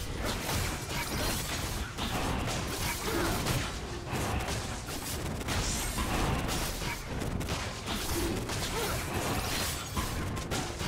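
Spells crackle and blows thud as fighters battle a large monster.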